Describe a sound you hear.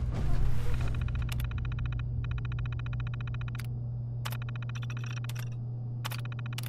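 A computer terminal chirps rapidly as text prints.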